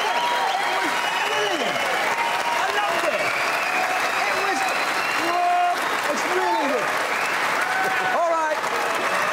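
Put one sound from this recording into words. A large crowd cheers and whistles loudly in a big echoing hall.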